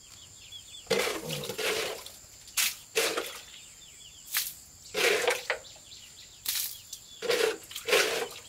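Wet feed slaps and splatters into a trough.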